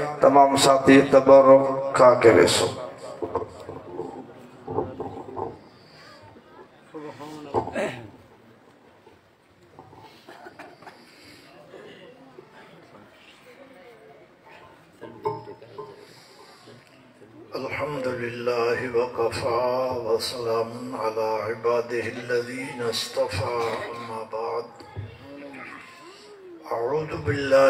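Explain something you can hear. A man chants loudly into a microphone over a loudspeaker.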